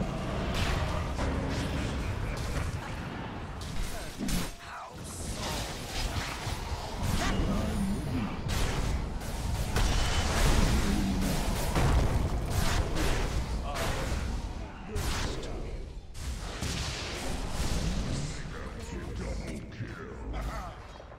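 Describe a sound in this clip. Magic blasts and weapon clashes crackle and boom in a fast battle.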